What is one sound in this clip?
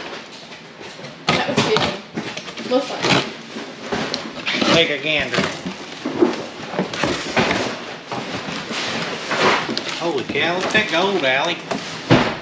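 Cardboard flaps rustle and scrape.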